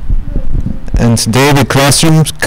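A teenage boy reads out into a microphone.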